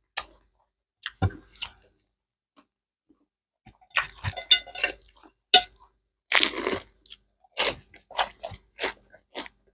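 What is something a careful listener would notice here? A woman chews and smacks her lips close up.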